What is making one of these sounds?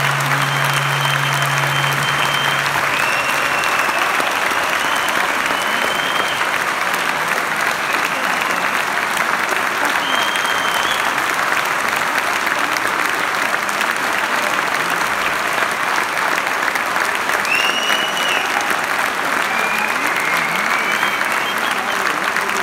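A large audience applauds loudly and steadily in an echoing hall.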